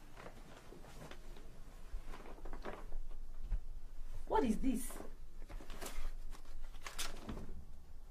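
A paper gift bag rustles as hands dig through it.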